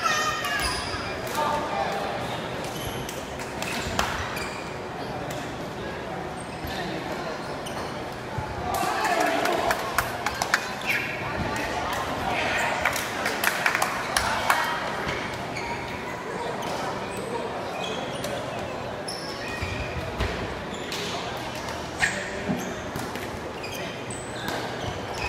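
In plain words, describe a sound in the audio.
A ball thuds off feet and bounces on a hard floor in a large echoing hall.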